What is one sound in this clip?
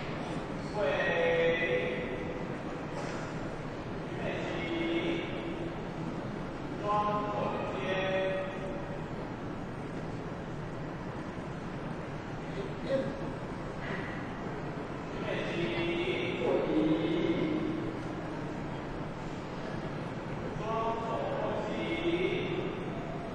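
A crowd of worshippers voices in an echoing hall.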